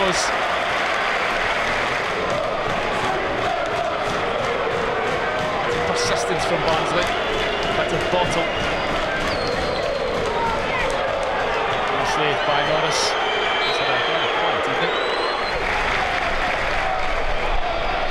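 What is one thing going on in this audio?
A large crowd murmurs and calls out in an open stadium.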